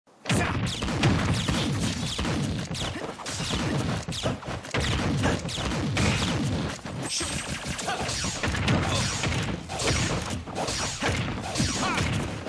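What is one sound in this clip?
Video game fighters trade rapid hits with sharp impacts and whooshing blasts.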